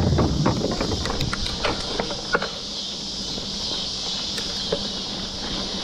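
A bicycle frame rattles and clicks over bumps.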